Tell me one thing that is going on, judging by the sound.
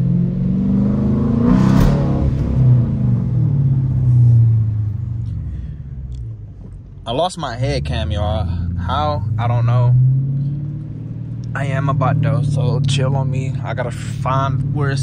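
A car engine revs up and down, rumbling deeply.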